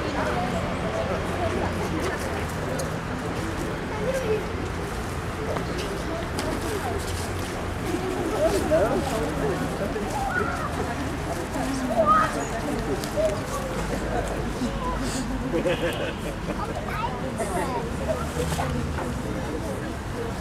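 A crowd of adults talks in a low murmur outdoors.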